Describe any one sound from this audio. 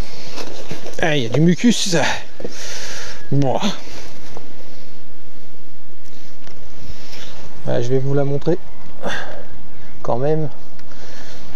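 A man talks calmly, close by.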